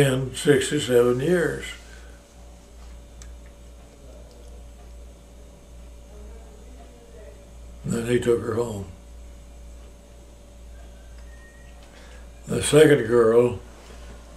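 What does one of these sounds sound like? An elderly man speaks slowly and calmly, close by, with pauses.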